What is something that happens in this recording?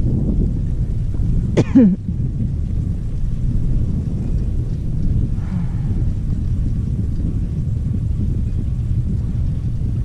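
Wind rumbles steadily against a moving skier.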